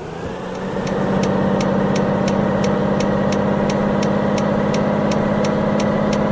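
A truck engine drones steadily as it cruises.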